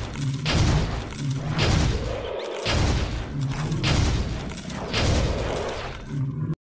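Magic spells blast and crackle in quick, regular bursts.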